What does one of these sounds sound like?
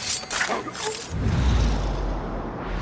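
A blade strikes flesh with heavy thuds.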